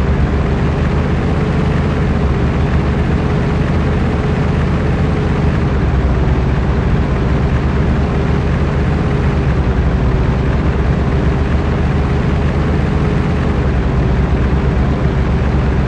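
A truck engine rumbles steadily at a low, even pitch.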